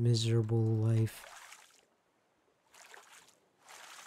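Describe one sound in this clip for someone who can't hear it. A paddle splashes through water.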